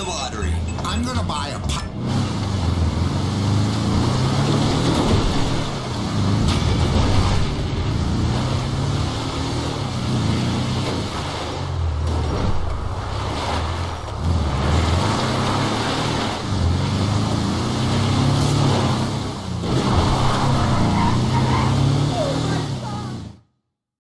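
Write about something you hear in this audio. A car engine revs and drones as it drives over rough dirt.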